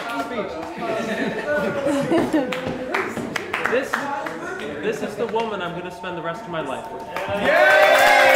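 A young man and a young woman talk and laugh softly nearby.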